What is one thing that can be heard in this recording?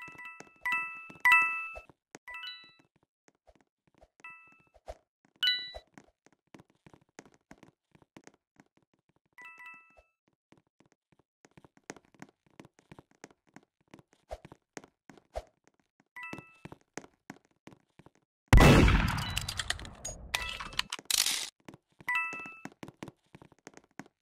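Quick light footsteps patter on a hard floor.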